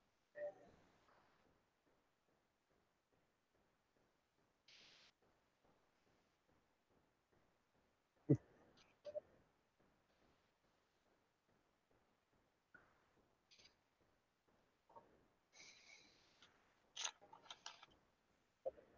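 An elderly man speaks in short bursts over an online call.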